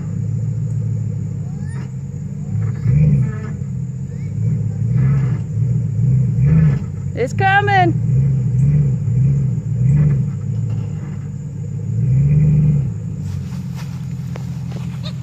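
A pickup truck's engine rumbles and revs up again and again.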